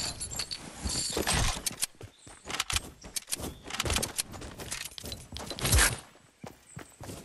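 Footsteps patter quickly across wooden planks and snow.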